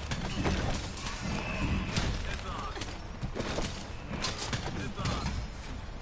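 A heavy blade strikes with sharp metallic clangs.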